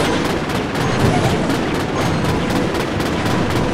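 A swarm of small game creatures attacks with rapid clashing hits.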